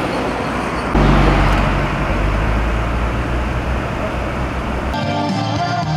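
Car engines idle and rumble close by.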